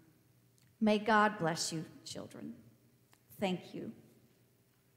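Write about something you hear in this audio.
A woman speaks briefly into a microphone in an echoing hall.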